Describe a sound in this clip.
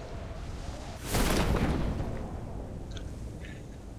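A parachute opens with a whoosh.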